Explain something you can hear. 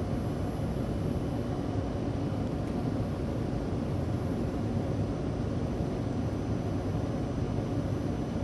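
A train rumbles steadily as it rolls along the tracks.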